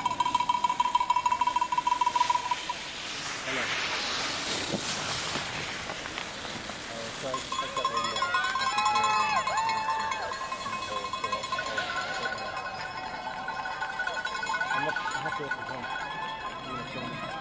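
Skis scrape and hiss over hard snow.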